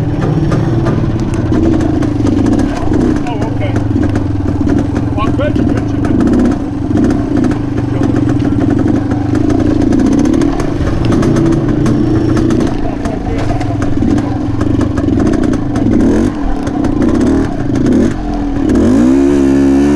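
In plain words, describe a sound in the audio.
A dirt bike engine revs and sputters loudly up close, rising and falling in pitch.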